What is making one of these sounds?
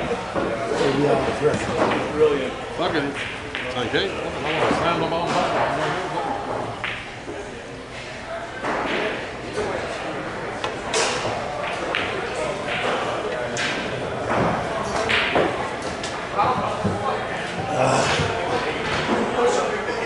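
Men chat quietly nearby in a room.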